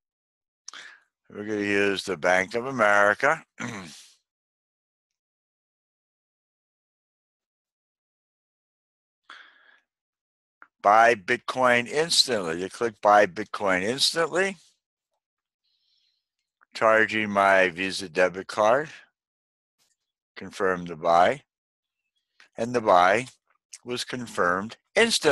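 A man speaks calmly into a close microphone, explaining in bursts with pauses.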